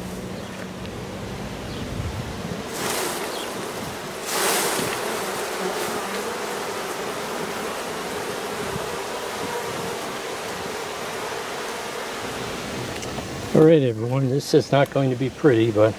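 Bees buzz in a steady, low hum.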